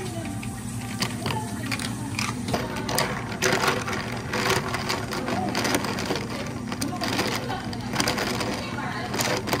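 Ice cubes clink and crackle against a glass as they are placed.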